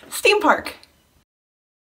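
A young woman speaks cheerfully into a microphone.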